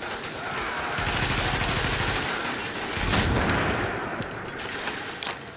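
Explosions boom and crackle with fire.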